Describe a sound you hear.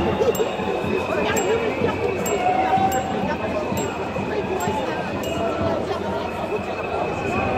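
A crowd of men and women chants and shouts loudly outdoors.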